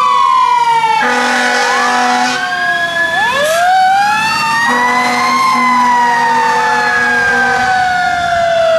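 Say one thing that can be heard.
An air horn blasts in short bursts.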